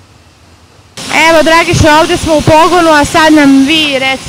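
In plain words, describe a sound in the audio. A woman speaks clearly into a microphone, close by.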